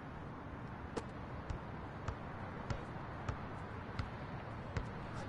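A basketball bounces steadily on a hard court.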